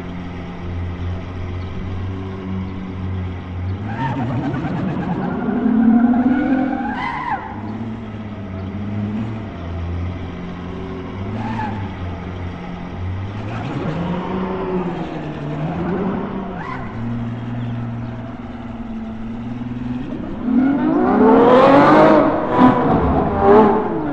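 A sports car engine rumbles and revs, rising and falling in pitch.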